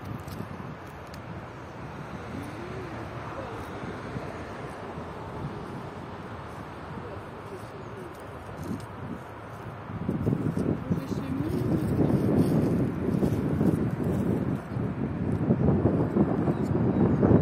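Wind rumbles across open ground, growing stronger.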